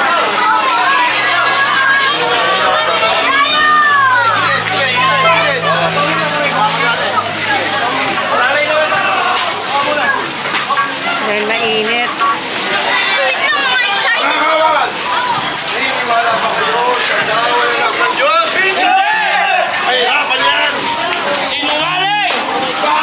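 A crowd of men and women chatters and calls out all around outdoors.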